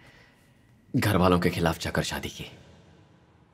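A man speaks in a low, strained voice close by.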